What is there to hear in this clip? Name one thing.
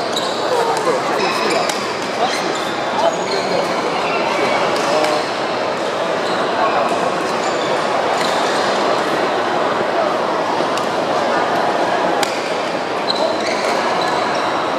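A crowd of people chatters throughout an echoing hall.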